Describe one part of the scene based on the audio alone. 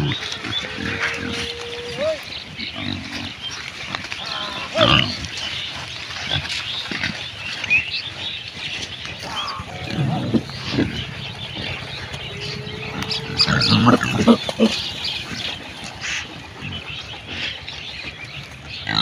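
Pigs rustle through dry grass and litter.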